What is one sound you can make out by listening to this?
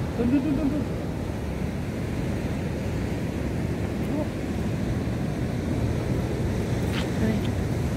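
Waves crash and wash against a sea wall.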